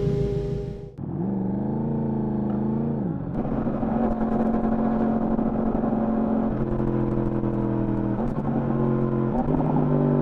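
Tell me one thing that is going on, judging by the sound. A motorcycle accelerates and shifts gears while riding along a road.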